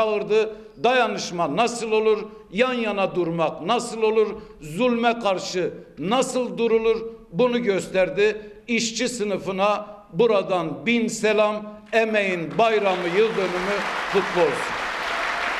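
A man speaks forcefully and shouts into a microphone in a large hall.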